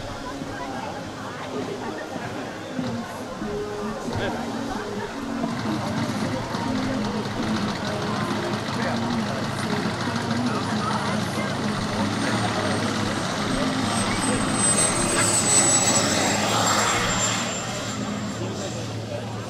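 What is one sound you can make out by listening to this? A model jet engine whines overhead, growing louder as it approaches and passes close by with a falling pitch.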